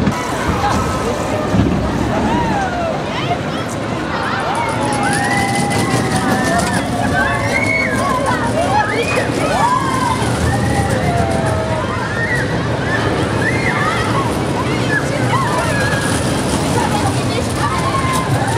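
A roller coaster rumbles and clatters along its track.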